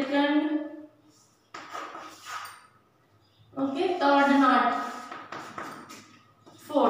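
A woman speaks clearly and calmly, close by.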